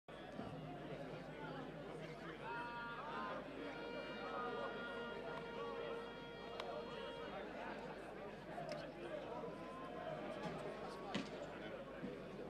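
A crowd of spectators cheers and chants outdoors.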